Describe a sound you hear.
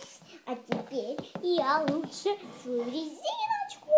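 A plastic toy knocks lightly on a hard surface.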